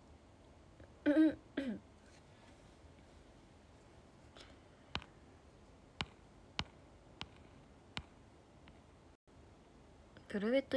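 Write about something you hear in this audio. A young woman speaks briefly and quietly, close by.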